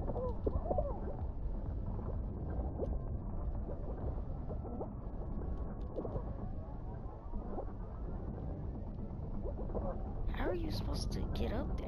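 Cartoonish game characters bump and bounce with soft thuds.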